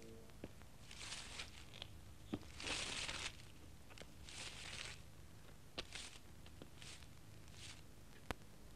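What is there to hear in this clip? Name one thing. A broom sweeps across pavement in short swishing strokes.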